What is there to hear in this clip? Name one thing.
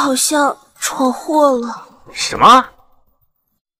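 A young woman speaks tensely into a phone.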